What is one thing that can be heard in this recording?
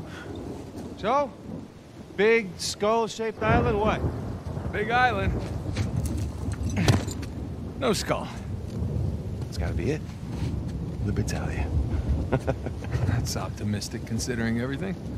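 A second man answers nearby with animation.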